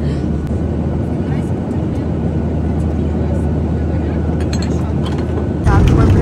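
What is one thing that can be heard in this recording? Glass bottles clink and rattle close by.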